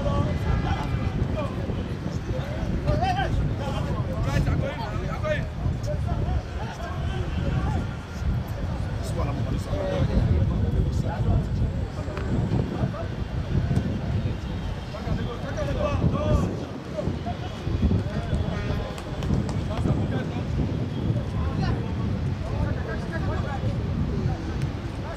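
Men near by talk and call out loudly outdoors.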